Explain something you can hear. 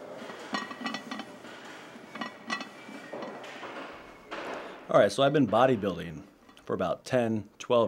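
A man grunts and breathes hard with effort.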